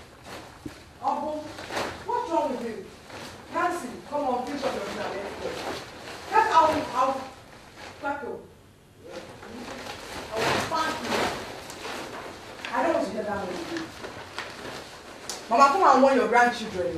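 A woman wails and sobs loudly.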